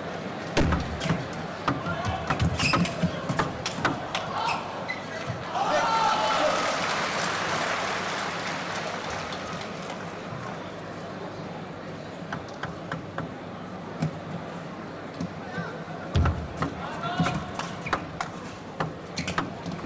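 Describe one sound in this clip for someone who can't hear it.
A table tennis ball clicks rapidly back and forth off paddles and the table in a large echoing hall.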